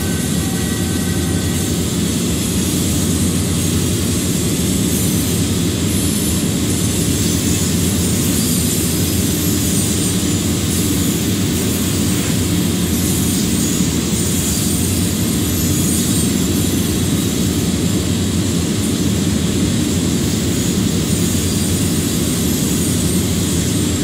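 Steel wheels roll and clatter on rails.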